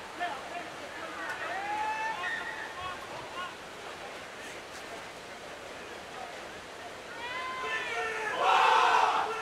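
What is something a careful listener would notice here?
Players call out to each other across an open field.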